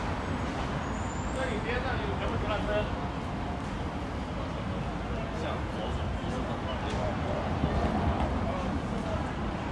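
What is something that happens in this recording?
A crowd of people murmurs and chatters nearby outdoors.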